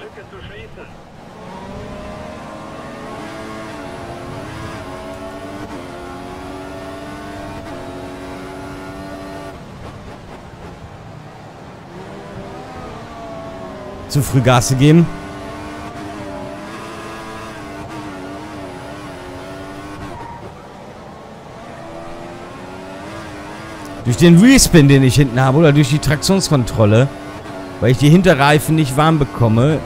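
A racing car engine whines loudly, rising in pitch through the gears and dropping as it slows.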